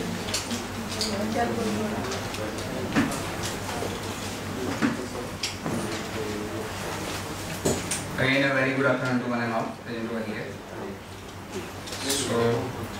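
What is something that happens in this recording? A man speaks steadily into a microphone over a loudspeaker in a room with some echo.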